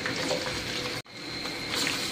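Hot oil sizzles in a pan.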